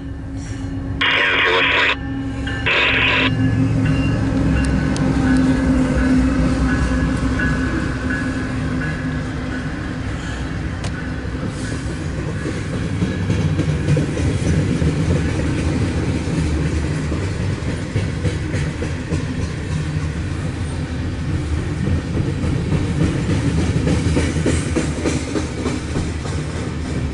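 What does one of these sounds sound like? A freight train rumbles and clatters past on the tracks close by.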